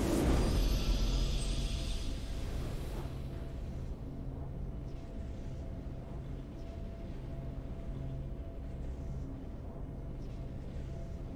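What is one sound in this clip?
A soft victory tune plays quietly.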